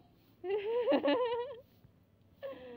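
A middle-aged woman calls out cheerfully nearby.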